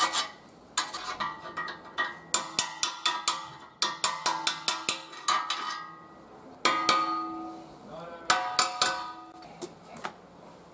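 A hammer taps repeatedly on ringing metal.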